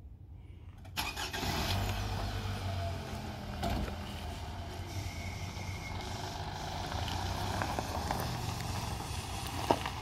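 Car tyres crunch slowly over gravel.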